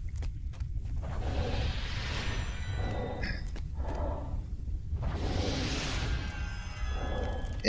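A magical spell whooshes and shimmers.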